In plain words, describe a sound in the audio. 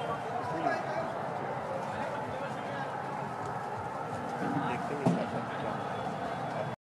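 A busy outdoor crowd chatters nearby.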